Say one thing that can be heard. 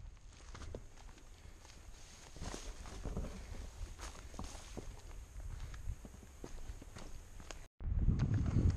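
A young man speaks quietly close to the microphone.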